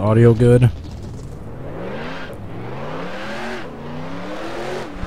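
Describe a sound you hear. A race car engine revs up, rising in pitch as the car speeds away.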